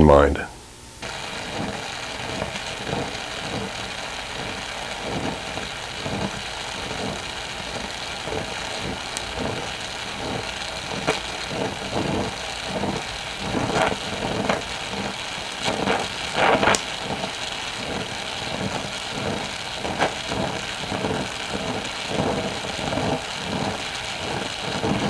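A gas torch flame hisses and roars steadily.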